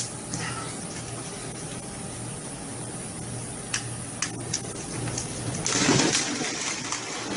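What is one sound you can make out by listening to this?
Water splashes and gushes.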